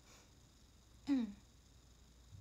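A young woman says a short word in a soft voice close to a microphone.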